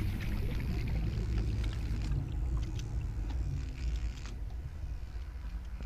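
A small underwater vehicle's motor hums with a low, steady rumble.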